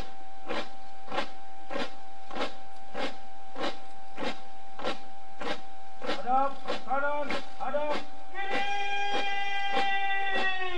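Many boots stamp in unison on hard ground at a steady marching pace.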